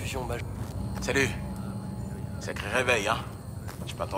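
A second man answers with animation.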